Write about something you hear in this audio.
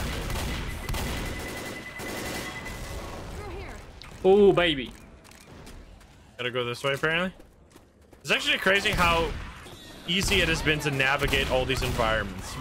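A shotgun fires in loud blasts.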